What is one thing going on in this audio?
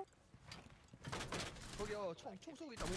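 Glass cracks and shatters.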